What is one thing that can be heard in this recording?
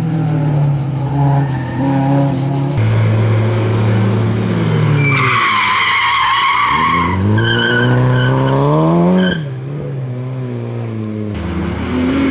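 A rally car engine revs hard and roars up a winding road.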